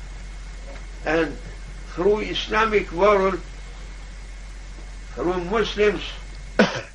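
An elderly man speaks slowly and calmly, close by, in short phrases.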